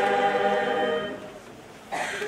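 A large choir sings a held chord in an echoing hall.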